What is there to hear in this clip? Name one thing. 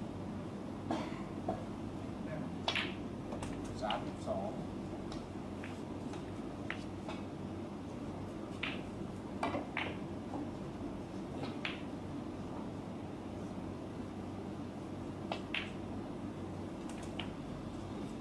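A cue tip strikes a ball with a sharp tap.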